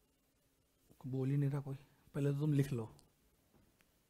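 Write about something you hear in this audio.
A man speaks calmly and briefly into a close microphone.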